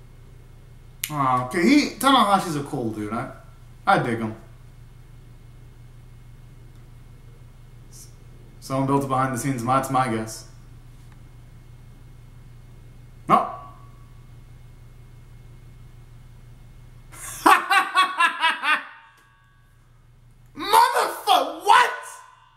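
A young man sings loudly, close by, in short bursts.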